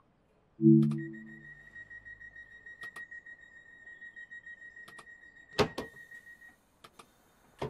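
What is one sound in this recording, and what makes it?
An electronic warning tone beeps rapidly in a train cab.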